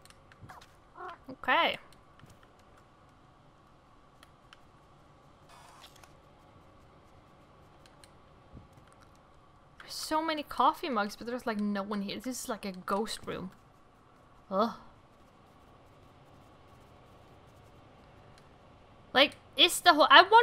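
A young woman talks with animation into a close microphone, in bursts.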